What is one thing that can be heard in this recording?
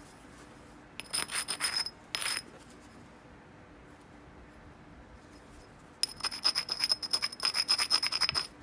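A pad rubs briskly against a stone edge with a rapid scratching.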